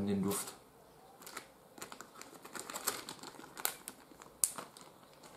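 A young man's fingers crackle softly while breaking apart a small snack.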